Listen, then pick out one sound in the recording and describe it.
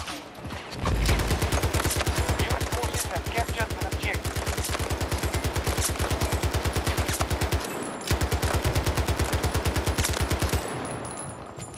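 A rifle fires rapid bursts of automatic shots that echo in a tunnel.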